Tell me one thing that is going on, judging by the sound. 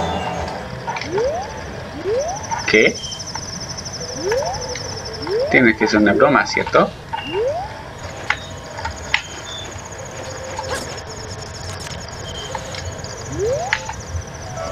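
Short rising electronic chirps from a video game repeat.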